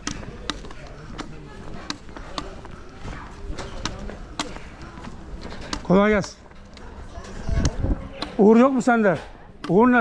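Footsteps tap steadily on a paved street outdoors.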